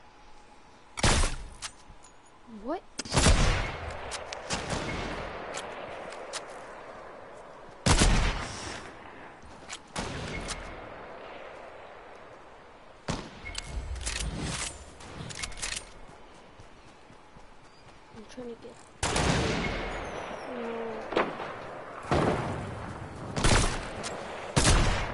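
Loud rifle shots crack every few seconds, each trailing off in a rumbling echo.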